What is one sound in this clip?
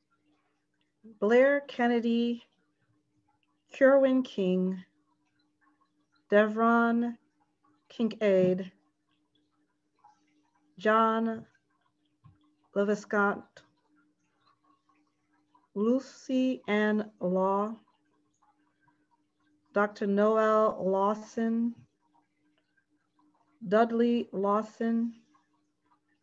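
A woman speaks slowly and calmly in short phrases over an online call.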